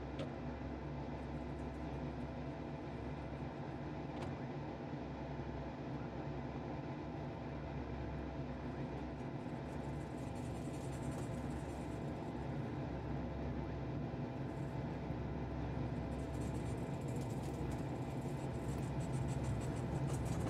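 A jet engine roars steadily and slowly grows louder.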